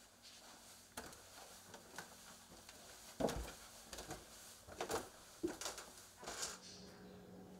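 Footsteps thud on stairs.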